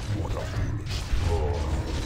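A fiery blast bursts with a loud boom.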